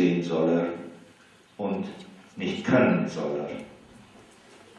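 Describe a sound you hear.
A man speaks into a microphone in a room with some echo.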